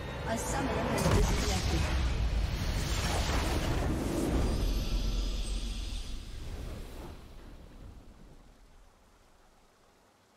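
A triumphant fanfare swells and then fades away.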